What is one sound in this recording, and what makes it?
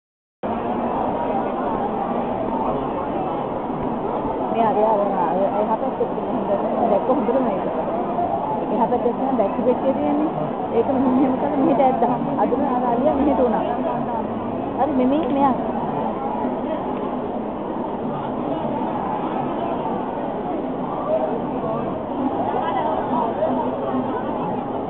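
A crowd of onlookers chatters and murmurs outdoors.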